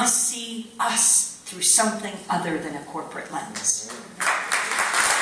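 A woman speaks calmly through a microphone and loudspeakers in a large hall.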